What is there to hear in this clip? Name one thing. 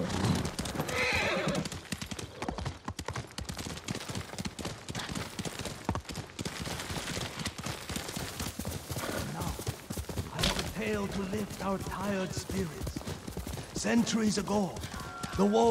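A horse gallops, its hooves thudding on the ground.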